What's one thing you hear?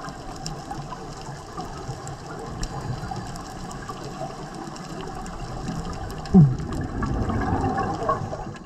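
Underwater sound hums low, with faint crackling and clicks.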